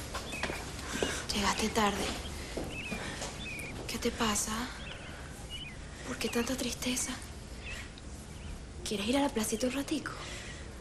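A young woman speaks earnestly, close by.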